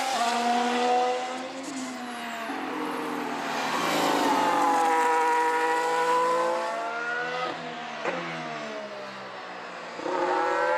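A racing car engine screams at high revs, rising and falling in pitch as it shifts gears.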